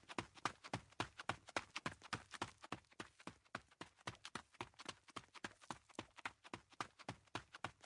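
Quick footsteps patter steadily on a wooden floor.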